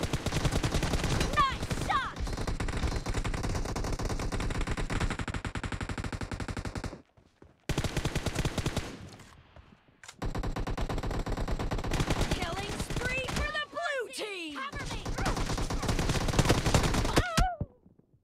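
Rapid automatic gunfire rattles in quick bursts.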